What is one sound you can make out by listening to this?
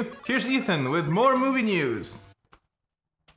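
A man speaks to the microphone in a lively way.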